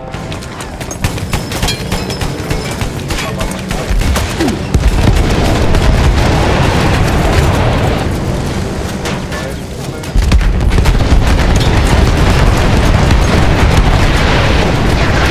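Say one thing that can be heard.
An anti-aircraft gun fires rapid bursts of loud shots.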